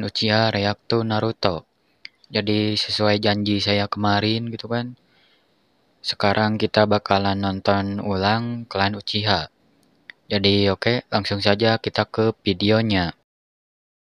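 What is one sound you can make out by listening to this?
A young man speaks with animation through a microphone.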